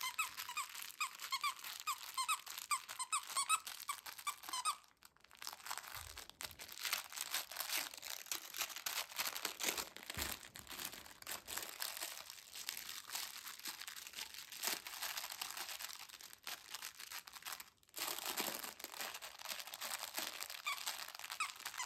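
A dog chews and mouths a plush toy.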